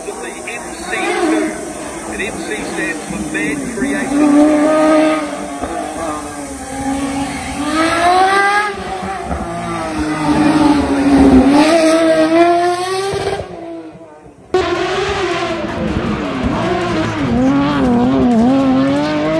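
A racing car engine revs hard and roars, shifting up and down through the gears.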